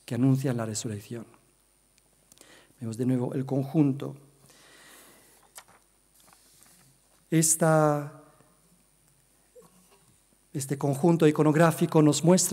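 A man speaks calmly into a microphone, lecturing in a room with slight echo.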